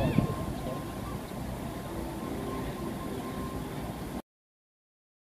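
Distant voices of men and women murmur outdoors.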